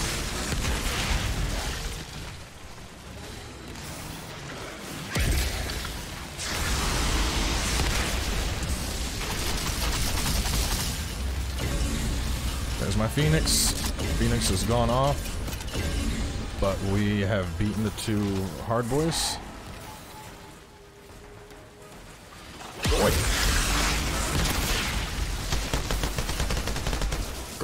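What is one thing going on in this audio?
Fire roars and crackles from explosions.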